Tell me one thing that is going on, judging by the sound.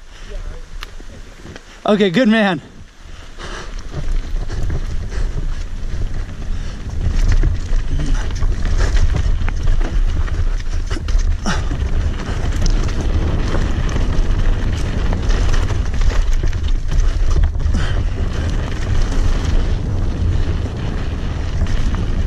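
Bicycle tyres crunch and roll over a dirt trail.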